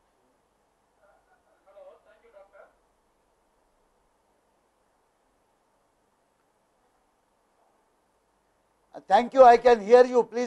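A man speaks through a headset microphone over an online call.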